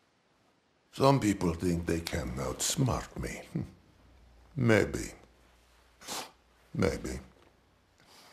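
A man speaks slowly in a deep, heavy voice, close to the microphone.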